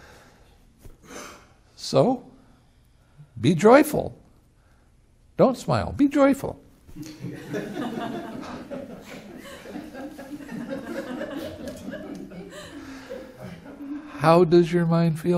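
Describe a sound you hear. An elderly man speaks calmly and with humour, close to a microphone.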